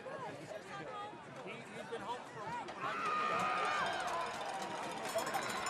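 A large crowd of spectators cheers and shouts outdoors, growing louder partway through.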